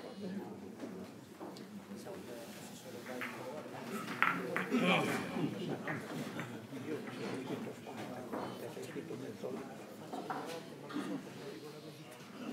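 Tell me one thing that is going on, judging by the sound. Several men murmur and talk nearby.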